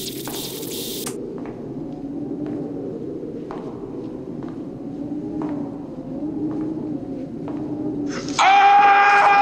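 Footsteps walk slowly across a hard floor in a large echoing hall.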